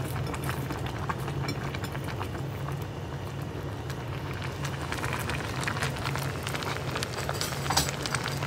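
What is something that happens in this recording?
A pot of soup bubbles and simmers steadily.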